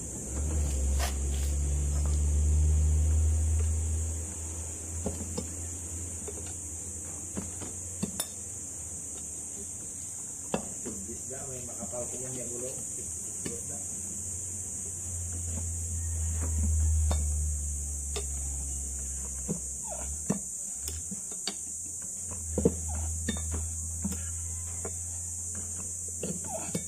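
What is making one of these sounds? Metal parts click and knock up close.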